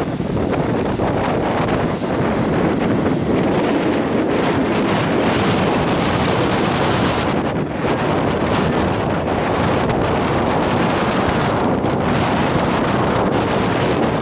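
Strong wind buffets loudly outdoors.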